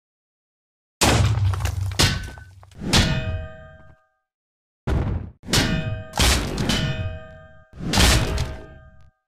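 Metal weapons clang and strike in a fight.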